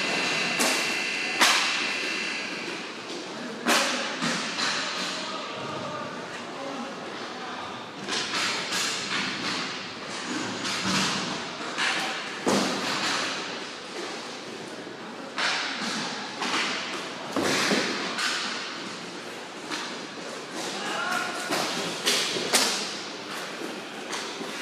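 Skate wheels roll and scrape across a hard floor in a large echoing hall.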